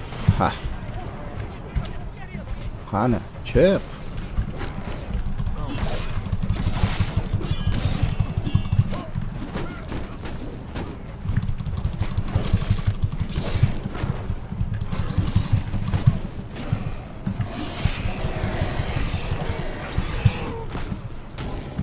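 Game fight sounds of blows and crashes go on steadily.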